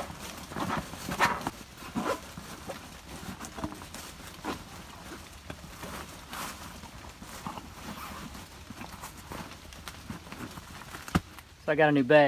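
Poles slide and rustle into a fabric pouch.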